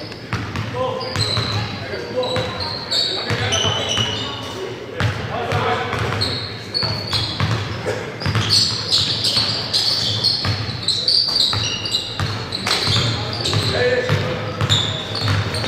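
Players' footsteps patter across a large echoing gym.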